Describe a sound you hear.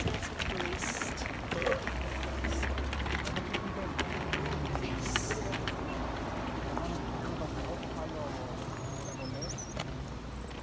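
A woman talks close to the microphone.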